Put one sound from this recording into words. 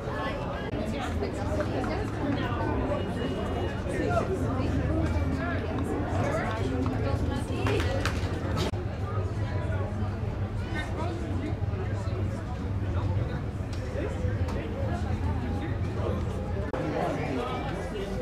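A crowd of young players chatters and shouts outdoors.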